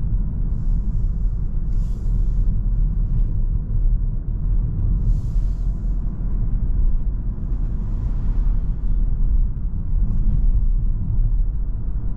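Tyres roll with a low rumble on the road.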